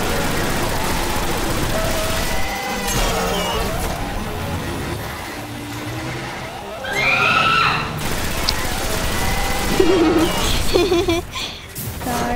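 A rifle fires repeated sharp shots.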